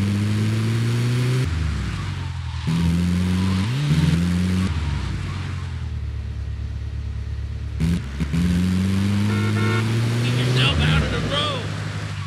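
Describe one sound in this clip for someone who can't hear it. A vehicle engine hums and revs up and down as it drives.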